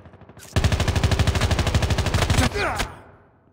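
Rapid automatic gunfire rattles loudly.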